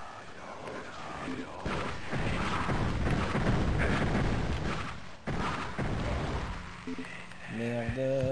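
A man talks casually into a nearby microphone.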